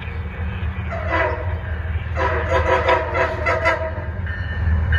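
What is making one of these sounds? A train horn blows loudly.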